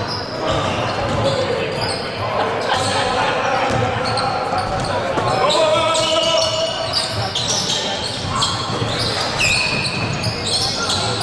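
A basketball bounces on the court with echoing thuds.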